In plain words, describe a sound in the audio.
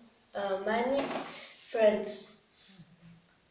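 A boy speaks briefly and calmly.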